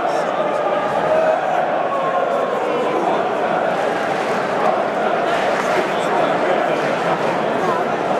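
A large stadium crowd sings and chants loudly, echoing under the roof.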